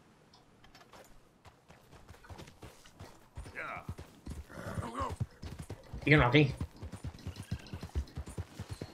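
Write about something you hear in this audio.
A horse's hooves thud at a gallop.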